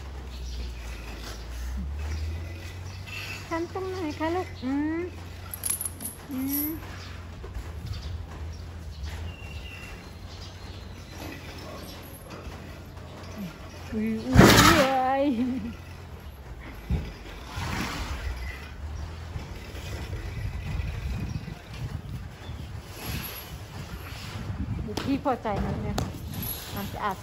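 A young elephant scuffs and kicks at loose dirt with its feet.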